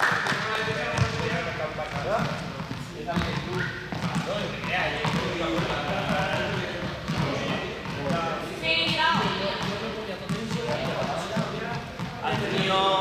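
Sneakers squeak and patter on a hard floor in an echoing hall.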